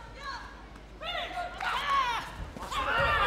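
A young woman shouts sharply.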